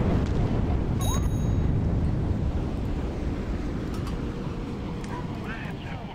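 Explosions rumble and crash.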